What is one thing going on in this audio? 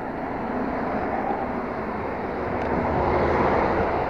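A car drives past nearby.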